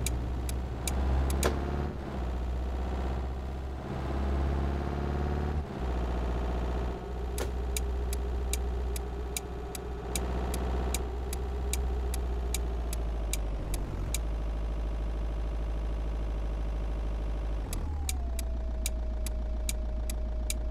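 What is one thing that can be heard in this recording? A car engine hums steadily, its pitch rising and falling with speed.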